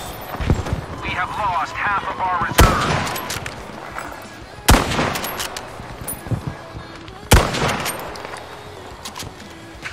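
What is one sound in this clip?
A rifle bolt clicks as it is worked back and forth.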